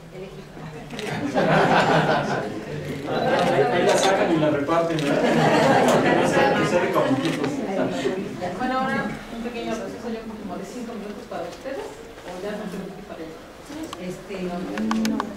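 A woman speaks through a microphone over loudspeakers.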